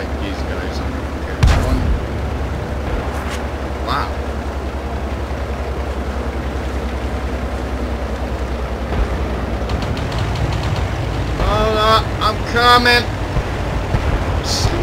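A tank engine rumbles steadily as the tank drives forward.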